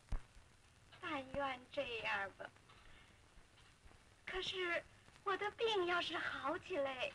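A woman speaks cheerfully and with animation.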